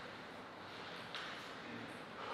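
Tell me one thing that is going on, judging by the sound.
A table tennis ball bounces on a table.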